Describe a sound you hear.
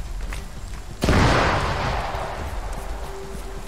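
An explosion booms close by and rumbles away.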